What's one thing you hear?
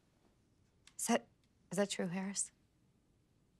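A young woman speaks quietly, close by.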